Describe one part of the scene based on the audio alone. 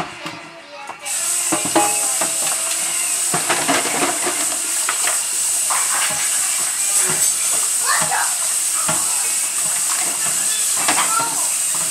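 Water runs steadily from a tap.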